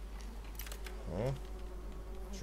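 A lock pick clicks and scrapes inside a metal lock.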